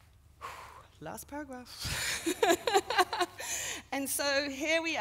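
A woman reads aloud into a microphone, with a hall's echo.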